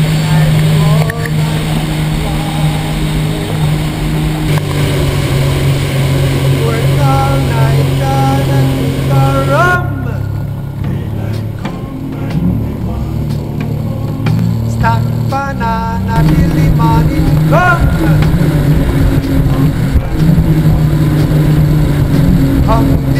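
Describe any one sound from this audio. Water sprays and splashes against a jet ski's hull.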